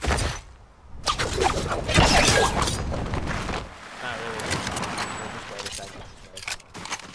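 A young man talks with animation through a headset microphone.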